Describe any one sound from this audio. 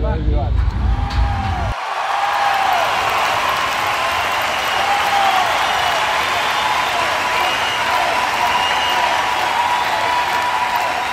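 A large crowd cheers and roars in the open air.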